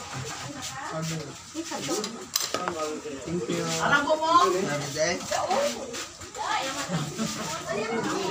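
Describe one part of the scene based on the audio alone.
A middle-aged woman talks casually nearby.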